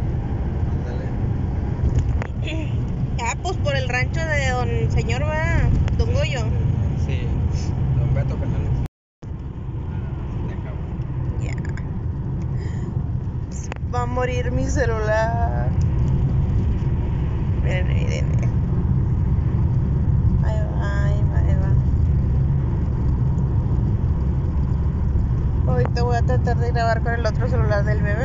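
A car engine hums steadily with tyres rumbling on the road.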